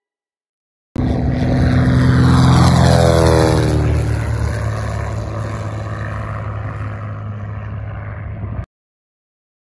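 A small propeller plane flies low overhead, its engine pitch dropping as it passes.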